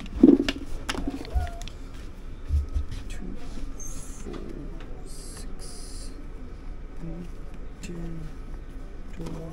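Sweets tap and slide softly on paper.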